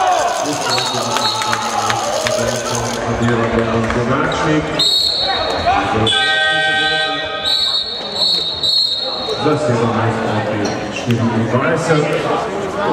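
Spectators shout and cheer nearby.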